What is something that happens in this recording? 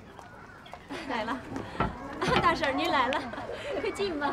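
A middle-aged woman speaks warmly in greeting.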